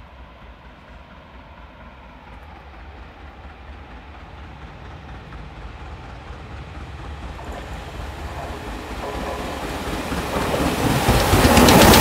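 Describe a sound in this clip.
A steam train approaches, growing steadily louder.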